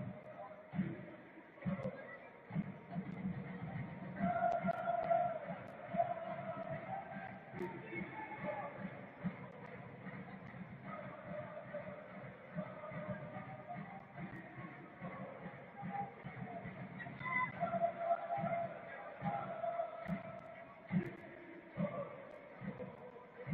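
A large stadium crowd murmurs and chants steadily, outdoors.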